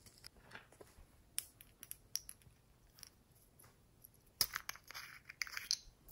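Fingers tap and click on a small plastic jar.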